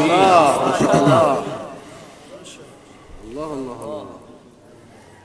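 A young man chants melodically into a microphone, heard through loudspeakers in an echoing hall.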